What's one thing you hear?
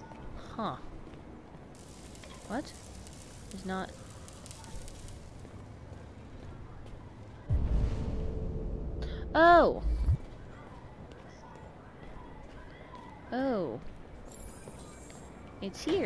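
Footsteps tap on a hard pavement.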